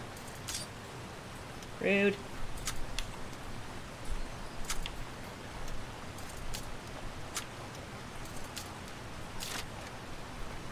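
Metal lockpick pins click and scrape inside a lock.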